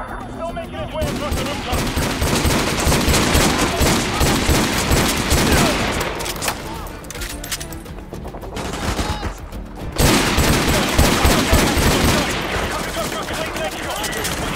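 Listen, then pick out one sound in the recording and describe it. Pistols fire rapid, loud shots.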